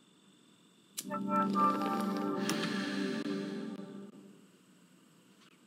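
A computer plays a startup chime.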